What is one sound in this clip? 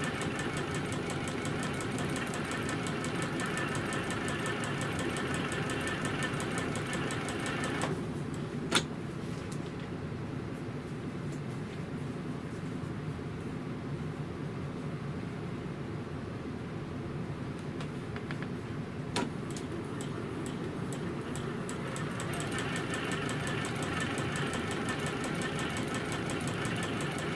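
A computerized sewing machine stitches through fabric with a fast, even hum.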